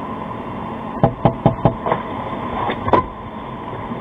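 Heavy thumps and knocks sound inside a car.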